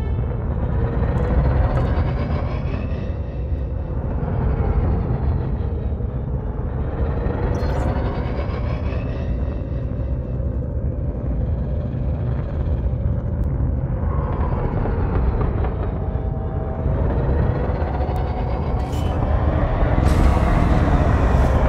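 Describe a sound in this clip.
A spaceship engine hums with a deep, steady rumble, its tone slowly rising and falling.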